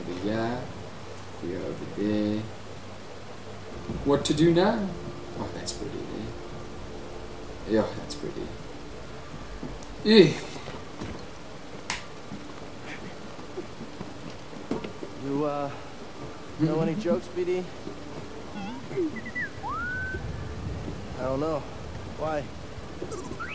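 A young man talks now and then into a microphone.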